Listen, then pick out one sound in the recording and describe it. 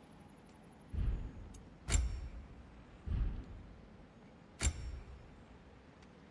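Game menu sounds whoosh and thud as selections change.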